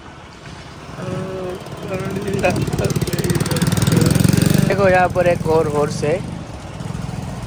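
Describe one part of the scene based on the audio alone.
A motorbike engine rumbles close by as it passes.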